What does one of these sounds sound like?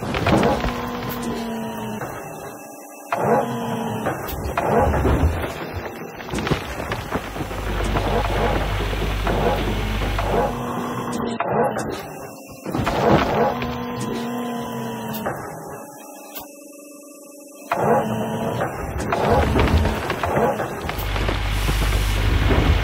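An excavator engine whines and hums with rising pitch.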